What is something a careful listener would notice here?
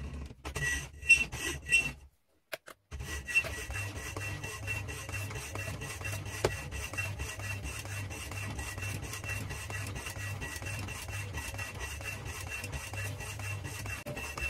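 A power hacksaw runs with a steady motor hum and a rhythmic back-and-forth rasp.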